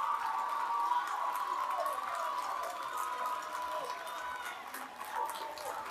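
A crowd of women cheers and chatters excitedly.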